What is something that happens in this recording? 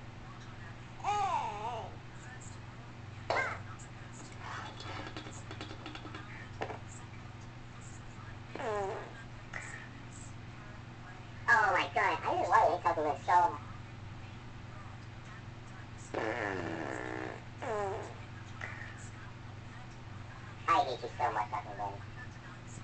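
A cartoon cat talks in a high, squeaky, sped-up voice through a small phone speaker.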